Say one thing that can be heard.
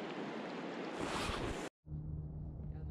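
Water splashes and bubbles over stones.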